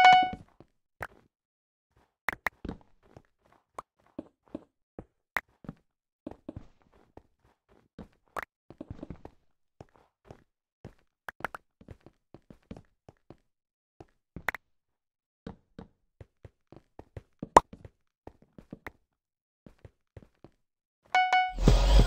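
Footsteps tap lightly and unevenly on hard blocks.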